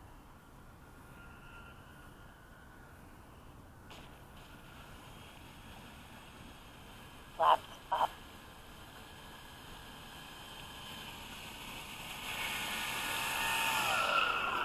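A small model plane engine buzzes across water, growing louder as it approaches.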